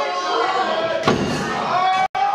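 A wrestler thuds heavily onto a ring mat.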